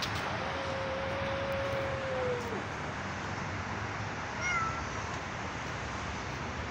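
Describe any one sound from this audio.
Several cats chew raw meat.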